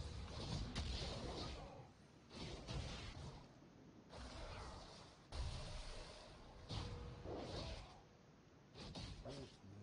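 Fantasy game combat effects clash and burst in short flurries.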